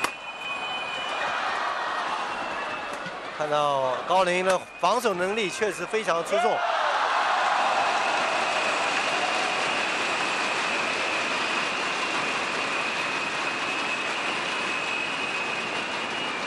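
A badminton racket strikes a shuttlecock with a sharp pop.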